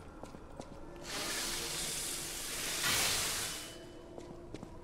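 Sparks crackle and hiss as a blade strikes.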